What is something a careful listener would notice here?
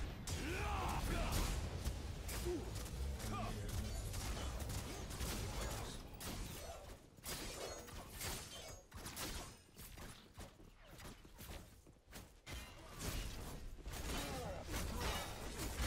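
Blades clash and strike in combat.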